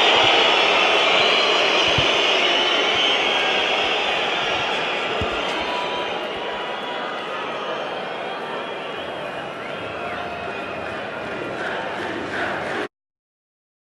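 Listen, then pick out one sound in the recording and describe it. A large stadium crowd cheers in the open air.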